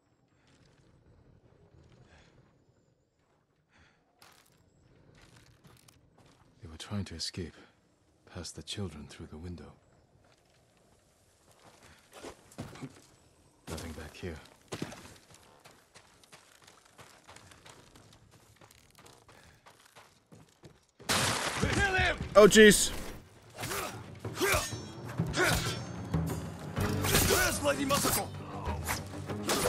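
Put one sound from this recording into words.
A man talks calmly into a microphone.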